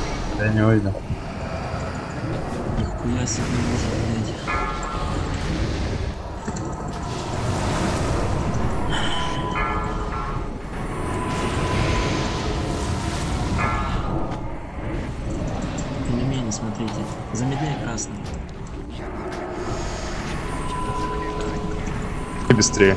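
Spell effects crackle and boom in a busy game battle.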